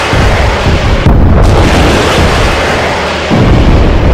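A tank cannon fires with a deep blast.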